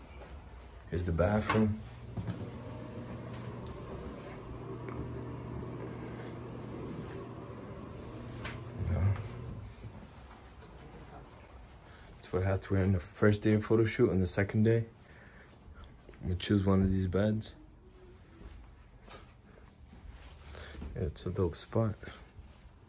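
A young man talks casually, close to the microphone, in short bursts.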